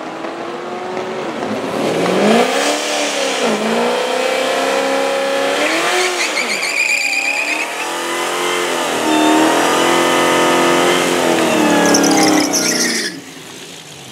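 A supercharged V8 muscle car revs hard, its engine rising and falling.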